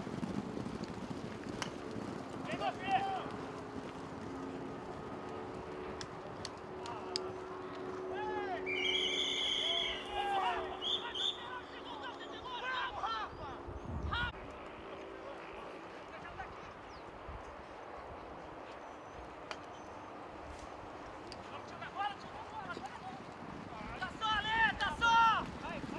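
Horses gallop over grass with dull, distant hoof thuds.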